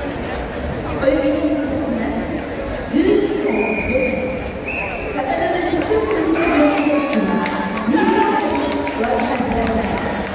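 Young men shout loudly and sharply as they spar.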